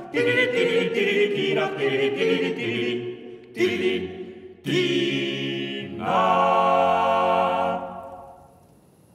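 A group of men sing together in close harmony, rising to loud, held notes.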